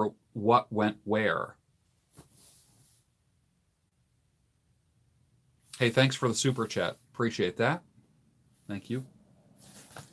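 An older man speaks calmly and close to the microphone, in short bursts with pauses.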